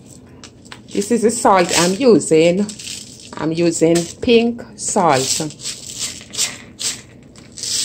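Coarse salt rattles inside a jar.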